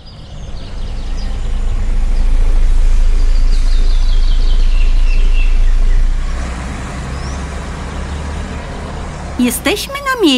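A bus engine rumbles as the bus drives past.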